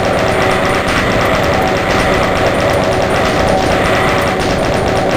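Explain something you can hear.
A weapon fires rapid, pulsing energy blasts without pause.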